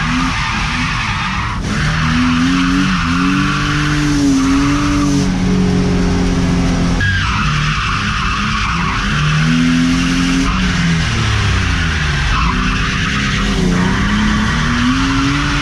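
A car engine revs hard, rising and falling as it drifts.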